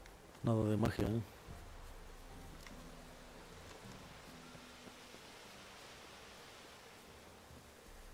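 Footsteps run along a dirt path.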